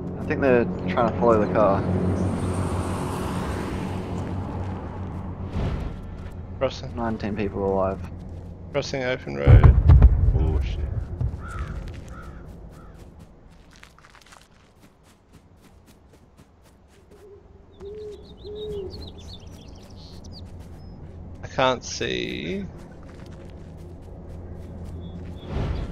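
Footsteps run quickly over grass and pavement.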